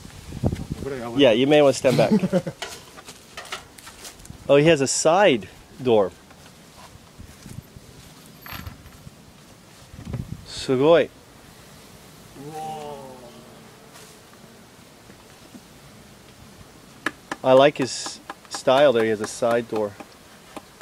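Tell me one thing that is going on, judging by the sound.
A man talks nearby in short bursts.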